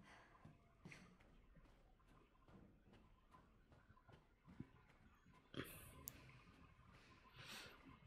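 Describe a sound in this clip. Footsteps tread softly on a wooden floor.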